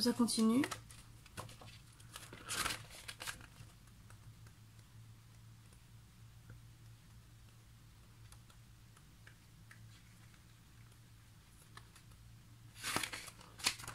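Paper pages rustle as a booklet is flipped through.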